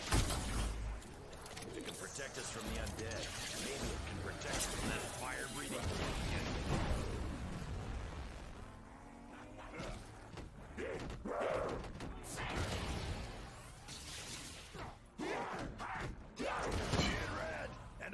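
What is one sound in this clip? Gunfire and explosions boom in quick bursts.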